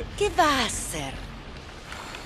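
A woman asks a question with urgency.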